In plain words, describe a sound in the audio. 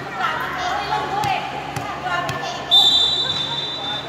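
A volleyball bounces on a hard floor.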